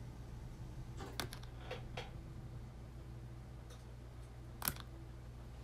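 Crinkly foil rustles and crackles.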